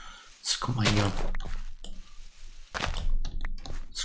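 Blocks of dirt crunch as they are dug away.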